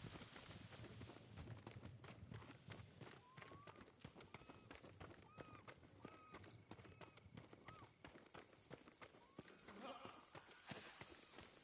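Footsteps run quickly on a dirt path.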